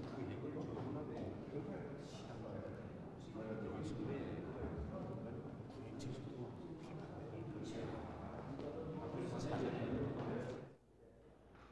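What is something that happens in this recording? Several men talk quietly nearby.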